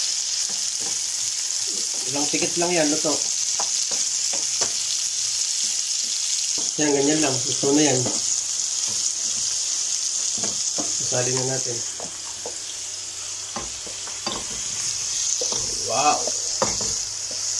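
Vegetables sizzle steadily in a hot frying pan.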